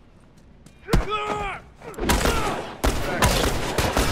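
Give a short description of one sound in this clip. Heavy blows thud as a fighter is struck.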